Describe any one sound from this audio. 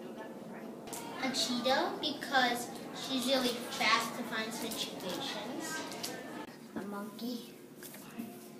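A young boy speaks calmly close by.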